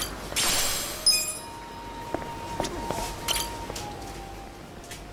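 Short electronic menu tones beep.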